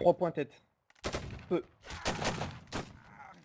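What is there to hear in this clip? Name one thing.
A volley of muskets fires with sharp cracks.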